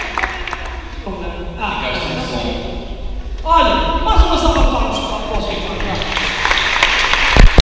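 A woman speaks into a microphone over loudspeakers in an echoing hall.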